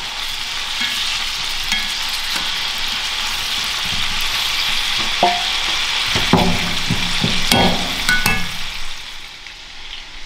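Potatoes sizzle steadily as they fry in a pan.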